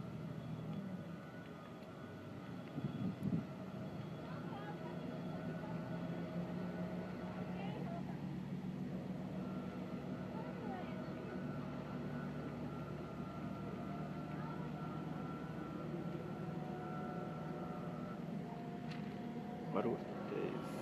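A metal gate slides and rattles along its track.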